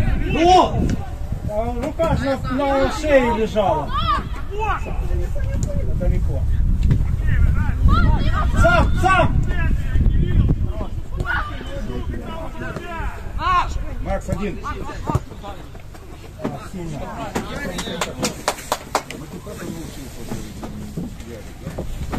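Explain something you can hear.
Young players shout to each other across an open field.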